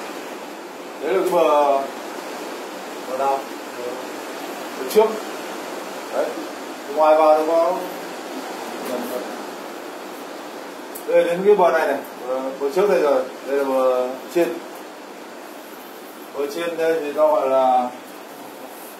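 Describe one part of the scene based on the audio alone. A man speaks in bursts, explaining calmly and up close.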